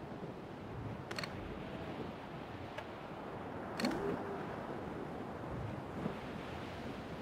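Waves wash and splash around a sailing ship's hull.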